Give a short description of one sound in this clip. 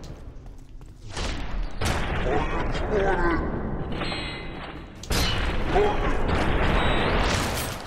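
A shotgun fires loud blasts that echo.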